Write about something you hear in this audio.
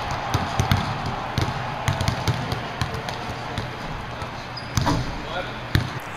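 Basketballs bounce on a hard gym floor, echoing in a large hall.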